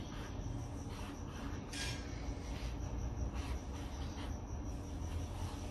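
A marker squeaks and scratches across a canvas in short strokes.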